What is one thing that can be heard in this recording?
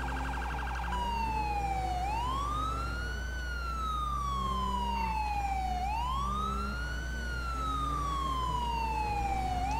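A police siren wails, slowly rising and falling.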